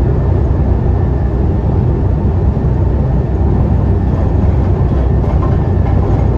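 Tyres roar on the road as the bus drives along.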